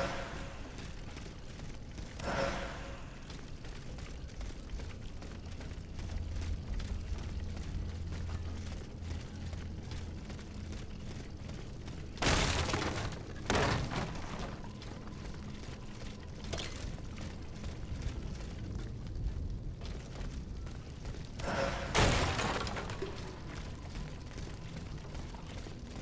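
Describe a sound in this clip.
Footsteps run over cobblestones.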